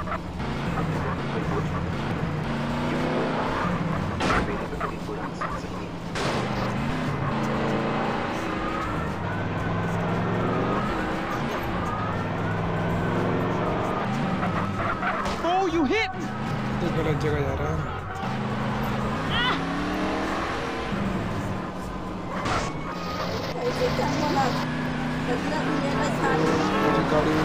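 A car engine roars steadily as it drives.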